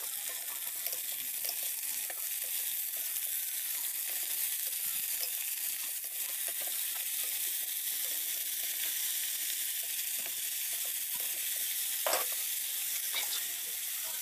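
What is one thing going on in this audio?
A metal spoon scrapes and clinks against a pan.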